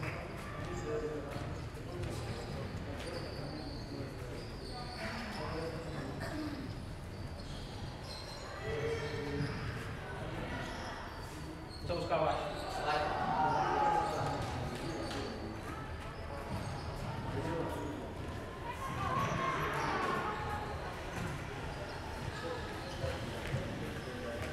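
Men talk calmly in a large echoing hall.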